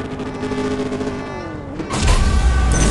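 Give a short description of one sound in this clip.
A sports car engine revs hard while idling at the line.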